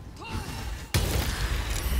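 A magical blast bursts with a loud roar.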